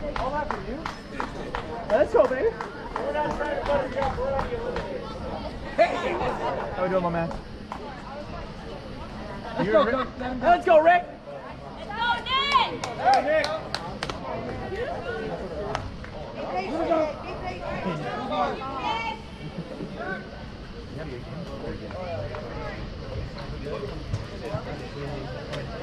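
Men and boys call out and talk across an open field outdoors.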